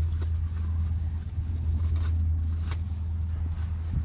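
Paper crinkles as it is unfolded.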